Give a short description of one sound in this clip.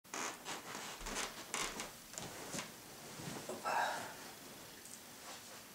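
Bedding rustles as a man lies down.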